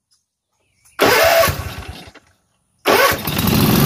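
A riding mower's engine cranks over.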